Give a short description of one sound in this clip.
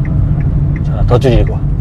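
A middle-aged man speaks briefly from close by.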